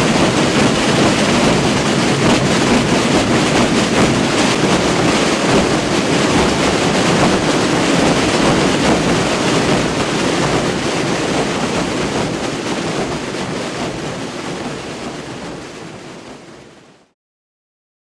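A huge crowd of drummers pounds drums together in a loud, echoing roar that fades away at the end.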